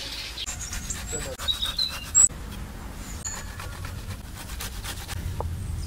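Vegetables scrape against a metal grater.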